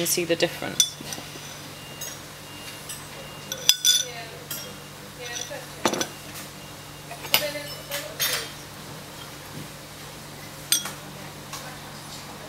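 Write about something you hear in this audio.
A spoon clinks against a china cup.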